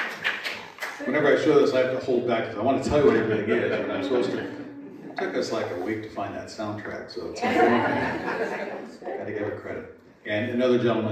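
A man speaks through a microphone in a large room, with some echo.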